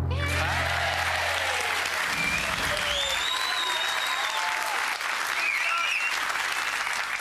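People in a crowd cheer and whoop.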